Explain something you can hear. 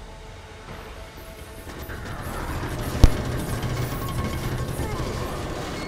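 A metal valve wheel turns with a grinding, rumbling noise.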